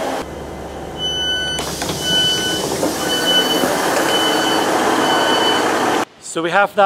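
Train doors beep repeatedly in a steady series of high tones.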